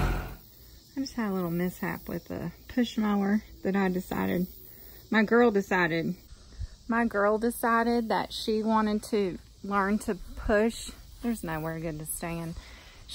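A woman speaks calmly and close up, with pauses.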